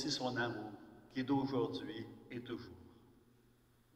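An older man speaks calmly through a microphone in a large echoing hall.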